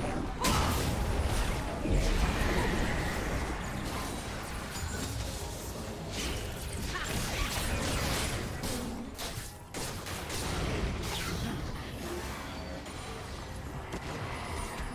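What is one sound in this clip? Game spell effects whoosh and crackle in quick bursts.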